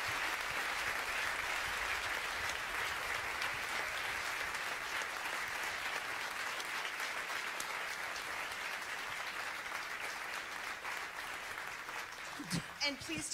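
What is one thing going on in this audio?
An audience laughs loudly in a large hall.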